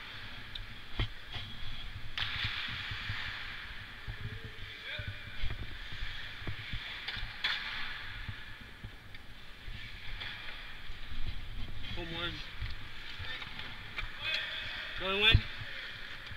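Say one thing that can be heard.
Hockey sticks clack on the ice.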